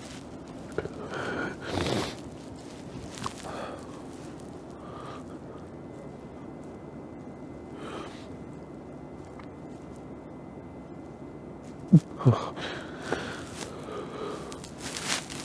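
A man speaks quietly nearby.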